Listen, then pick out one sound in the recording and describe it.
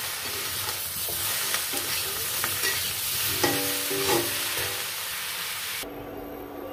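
Vegetables sizzle in hot oil.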